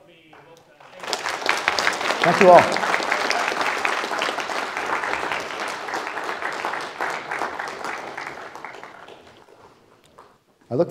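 An audience applauds in a large echoing hall and the clapping slowly fades.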